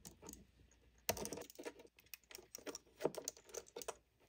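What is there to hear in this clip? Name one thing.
A precision screwdriver turns a small screw in a circuit board.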